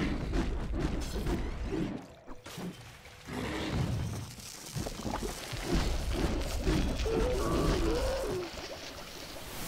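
Fantasy combat sound effects clash and crackle.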